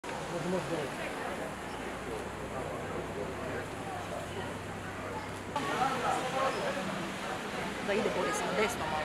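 Adults murmur and talk quietly nearby outdoors.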